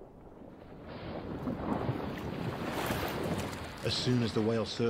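Water splashes as a whale rolls at the surface.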